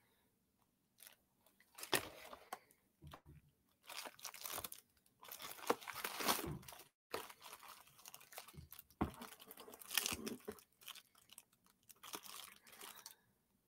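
A cardboard box rustles and crinkles as a hand handles it close by.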